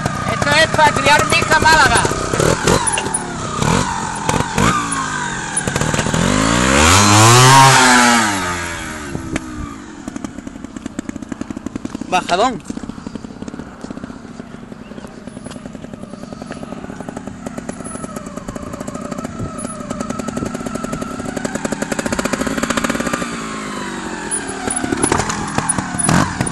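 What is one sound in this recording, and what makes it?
A trials motorcycle revs hard as it climbs a dirt bank.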